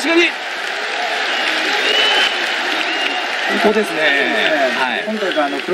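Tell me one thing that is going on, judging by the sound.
A large crowd shouts and cheers in a big echoing arena.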